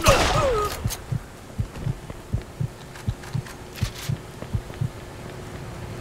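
Footsteps thud steadily on pavement.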